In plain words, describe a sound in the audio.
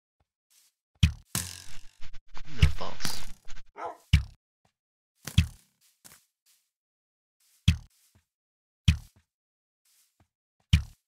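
A video game bow fires arrows with short sharp twangs.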